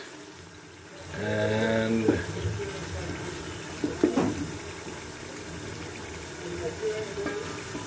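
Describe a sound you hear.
A wooden spoon stirs and scrapes food in a metal pot.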